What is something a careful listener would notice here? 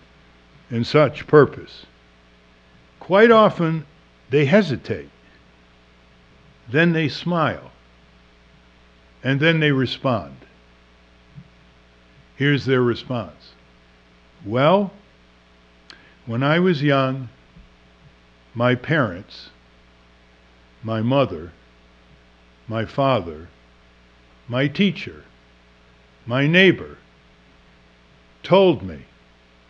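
An elderly man reads aloud slowly into a microphone, in short phrases with pauses.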